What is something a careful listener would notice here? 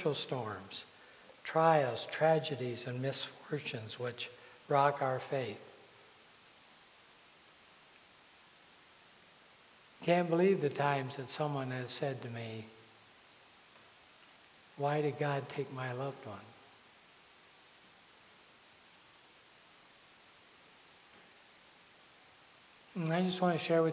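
A man speaks calmly with long pauses, heard through a microphone in a large echoing hall.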